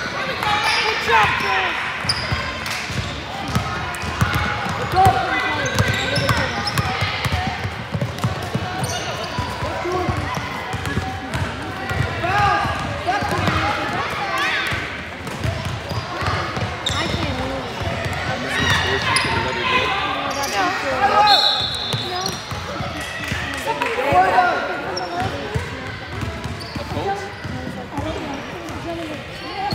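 Young women shout and call out in a large echoing hall.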